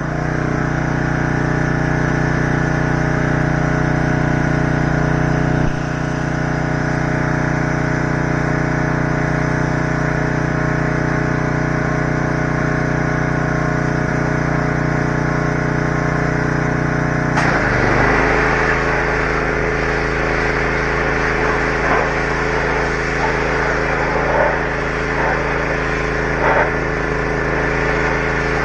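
A tractor engine idles with a steady, throbbing hum, then shifts to a different pitch.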